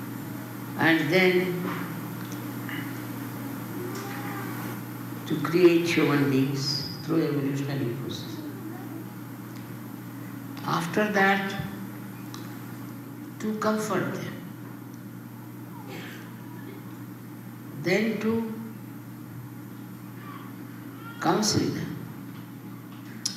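An elderly woman speaks slowly and calmly into a microphone, in short phrases with pauses.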